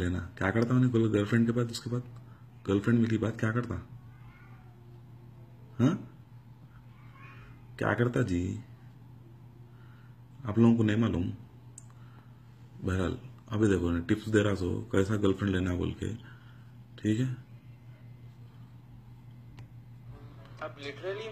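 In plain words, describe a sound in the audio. A young man speaks calmly to the listener, heard through a small loudspeaker.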